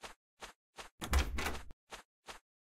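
A wooden door opens and shuts.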